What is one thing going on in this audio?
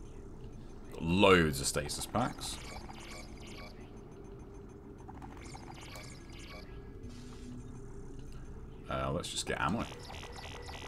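Electronic menu beeps and chimes sound.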